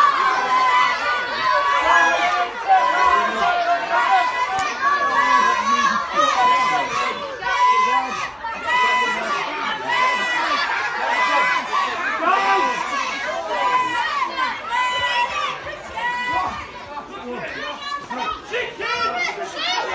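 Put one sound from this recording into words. A crowd of adults and children chatters and calls out loudly close by in a large echoing space.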